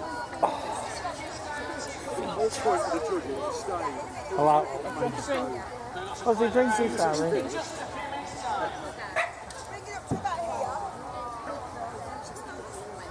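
A crowd of adults and children chatter outdoors.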